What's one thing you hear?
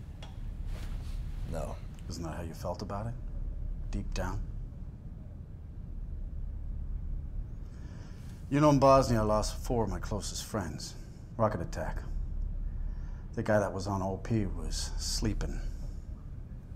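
A middle-aged man speaks calmly and slowly, close by.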